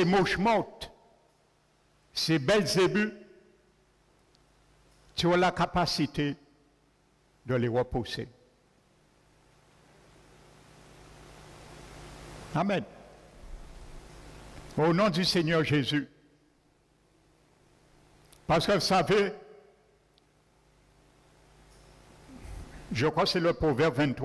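A man preaches into a microphone in bursts, with pauses between phrases, in a reverberant hall.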